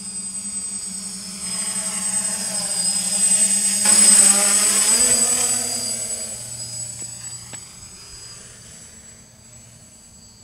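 A drone's whirring buzz grows loud as it flies close overhead, then fades into the distance.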